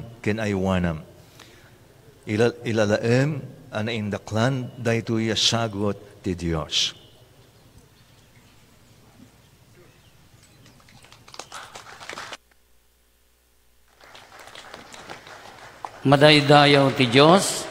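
A man chants in a slow, sung voice through a microphone.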